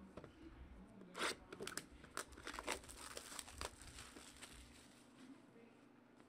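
Plastic wrap crinkles as it is torn off a box.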